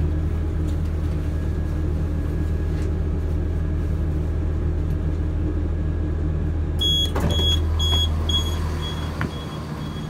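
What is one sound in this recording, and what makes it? A train engine hums steadily and low.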